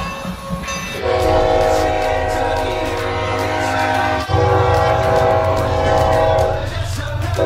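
A diesel locomotive engine rumbles as it rolls past.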